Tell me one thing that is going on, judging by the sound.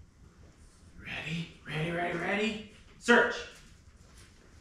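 A man speaks to a dog in an echoing room.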